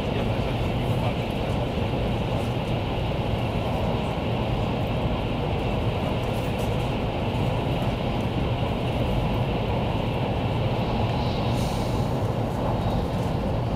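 A fast train rumbles steadily along its track, heard from inside a carriage.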